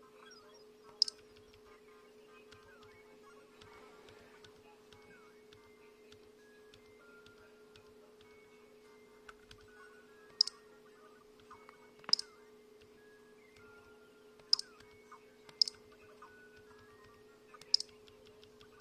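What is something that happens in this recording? Buttons on a handheld game console click sharply now and then.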